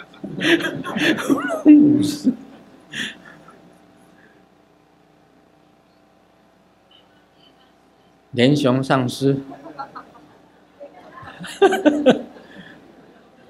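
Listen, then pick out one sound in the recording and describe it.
An elderly man speaks calmly and laughs into a microphone.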